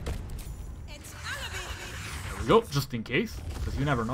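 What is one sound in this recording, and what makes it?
A magical spell shimmers and hisses.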